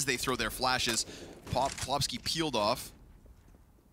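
A man talks quickly and with animation through a microphone.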